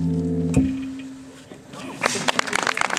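A plucked string instrument plays a final chord that rings and slowly fades.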